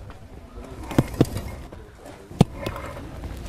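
Metal tools knock sharply against hard ground.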